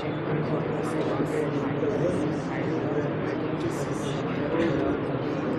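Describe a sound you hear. A man speaks steadily to an audience.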